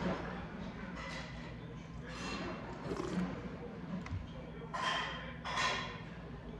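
A man slurps soup from a spoon.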